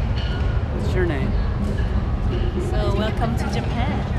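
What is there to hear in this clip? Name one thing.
A young woman speaks cheerfully close by.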